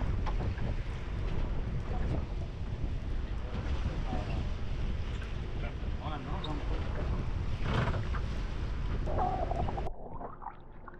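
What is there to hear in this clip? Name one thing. Waves slosh against a boat's hull.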